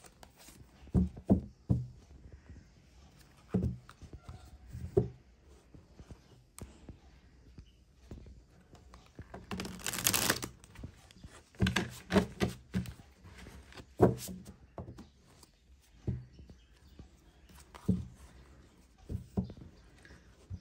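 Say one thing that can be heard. Cards tap and knock against a table.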